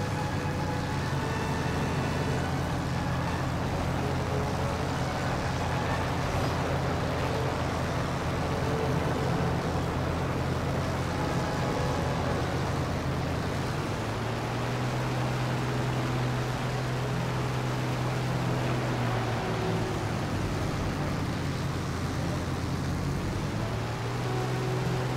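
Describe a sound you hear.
Propeller engines drone steadily and loudly throughout.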